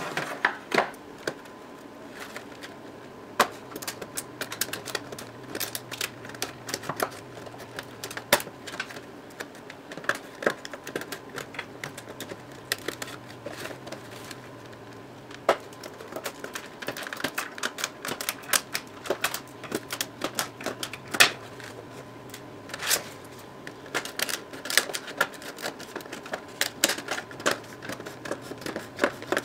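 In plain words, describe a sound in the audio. Stiff plastic packaging crinkles and clicks as it is handled up close.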